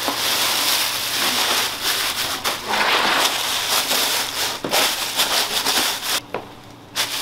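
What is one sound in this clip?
Plastic wrap crinkles and rustles as hands handle it.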